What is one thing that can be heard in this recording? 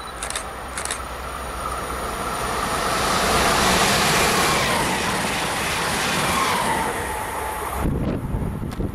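A fast train rushes past with a loud roar that swells and then fades.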